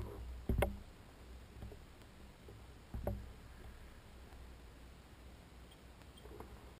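Wind rumbles across the microphone outdoors.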